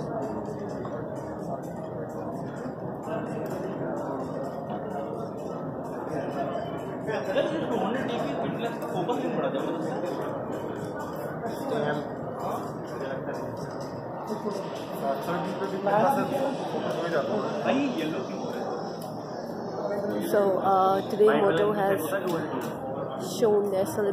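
A crowd of people chatter throughout a large echoing hall.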